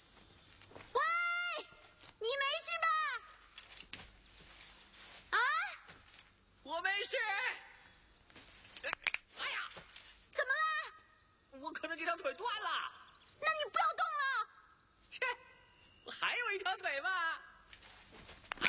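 A young woman calls out loudly and repeatedly.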